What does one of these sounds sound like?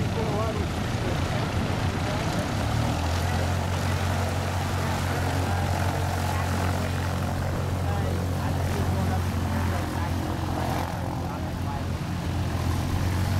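A small propeller plane's engine drones steadily outdoors.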